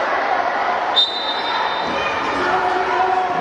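A referee's whistle blows a short shrill blast in a large echoing hall.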